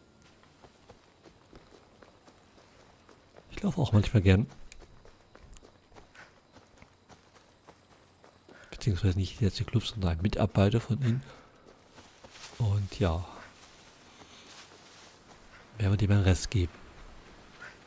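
Footsteps run over grass and rocky ground.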